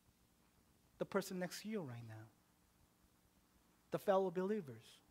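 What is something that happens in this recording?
A young man speaks with emphasis into a microphone, in short phrases with pauses.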